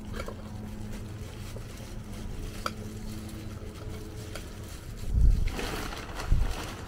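Soil rustles and crumbles around plant roots.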